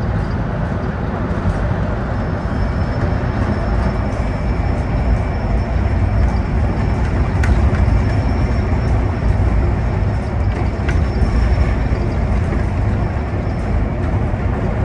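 Tyres roar on the road through a tunnel.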